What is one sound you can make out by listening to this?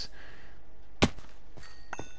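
A heavy thud sounds as something lands hard.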